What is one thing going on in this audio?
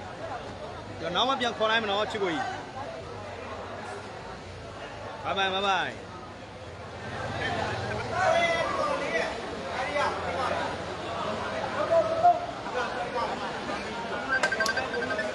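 A crowd of young men shouts and cheers nearby in a large echoing hall.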